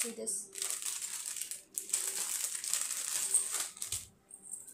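Plastic wrapping crinkles and rustles in hands.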